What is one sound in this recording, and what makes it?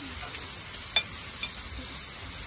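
A utensil clinks against a plate.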